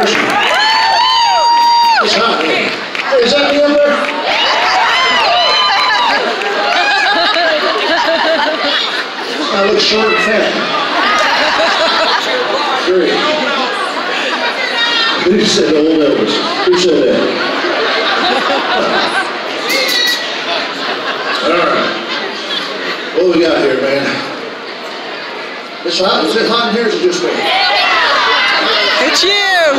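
A man sings into a microphone through loudspeakers in a large hall.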